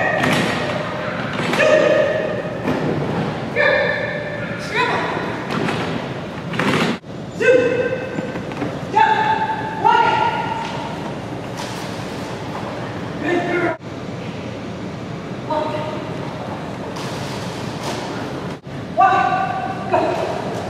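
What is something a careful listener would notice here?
A woman calls out short commands with animation in a large echoing hall.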